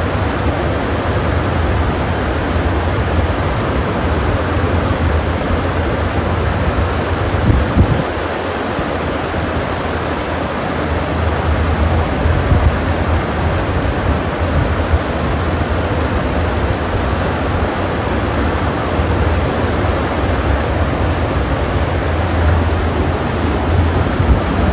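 Many electric fans whir and hum steadily, with a rushing of blown air.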